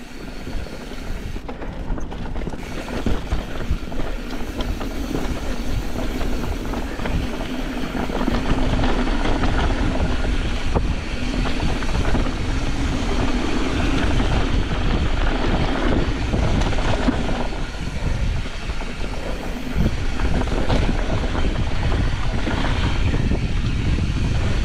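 Wind rushes steadily past the microphone.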